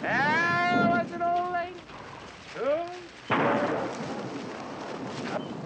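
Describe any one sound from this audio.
Horses' hooves thud and rustle through dry grass.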